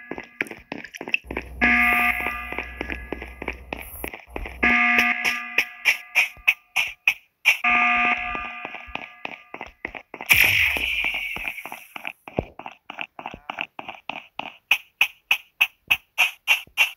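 Quick footsteps patter along steadily.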